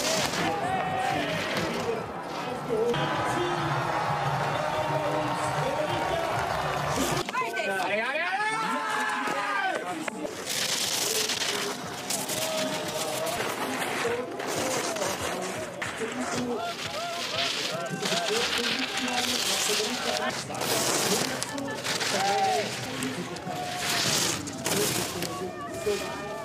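Ski edges scrape and hiss across hard snow in sharp bursts.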